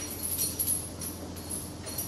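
Metal chains clink and rattle.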